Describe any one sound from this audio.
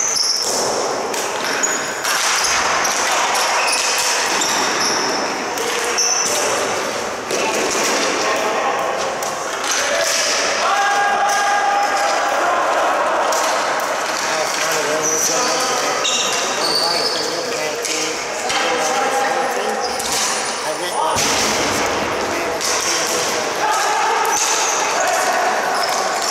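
Lacrosse sticks clack against each other.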